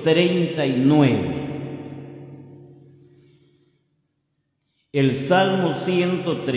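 A man speaks into a microphone with a lingering echo.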